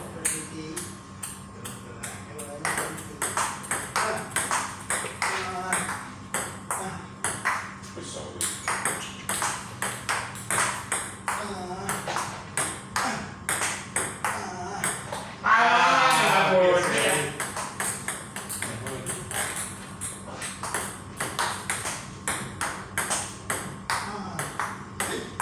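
A ping-pong ball clicks back and forth on paddles and a table in a quick rhythm.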